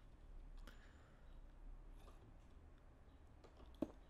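A stone block thuds softly into place.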